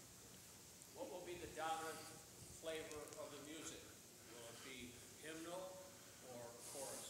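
A man speaks quietly from a distance.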